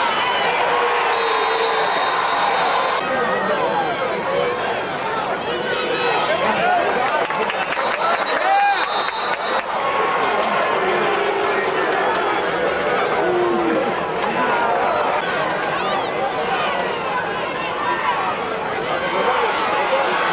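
Football players' pads thump and clatter as they collide.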